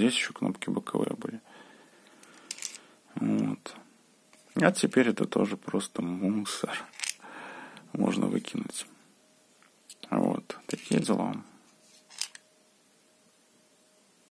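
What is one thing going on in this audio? A plastic phone case clicks and taps as a hand turns it over.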